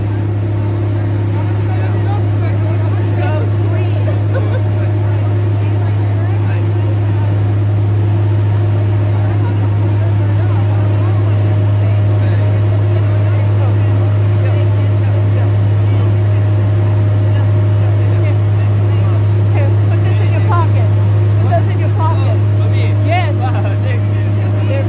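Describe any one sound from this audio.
A crowd murmurs outdoors in a city street.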